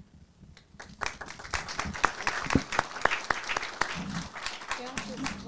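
A microphone clatters as it is set down on a table.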